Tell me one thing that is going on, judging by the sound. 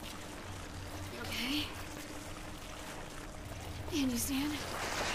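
A woman asks calmly and with concern.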